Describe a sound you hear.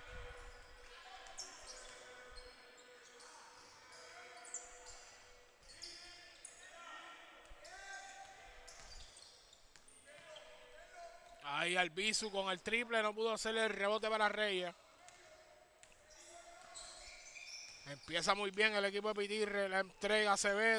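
Sneakers squeak sharply on a wooden court in a large echoing gym.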